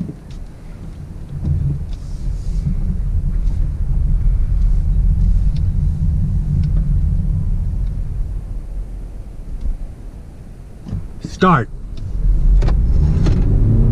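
A car engine hums and tyres rumble steadily on the road.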